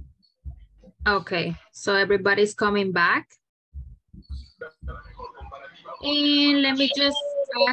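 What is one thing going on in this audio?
Other young women talk with animation over an online call.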